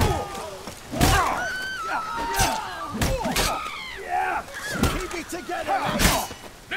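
Steel blades clash and ring in a fight.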